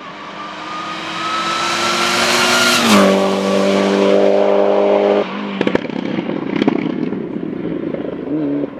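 A rally car engine roars loudly as it speeds closer, passes by and drops in pitch.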